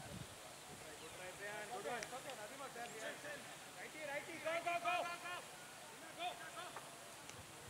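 Young men talk and call out calmly nearby.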